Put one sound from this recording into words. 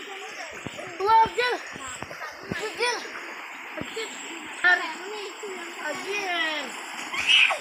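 A child shouts loudly.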